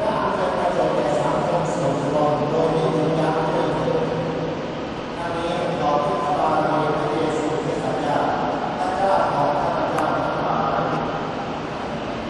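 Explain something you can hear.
An elderly man reads aloud slowly through a loudspeaker, echoing in a large open space.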